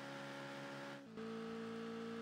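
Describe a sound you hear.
A racing car's engine briefly cuts out and drops in pitch as it shifts gear.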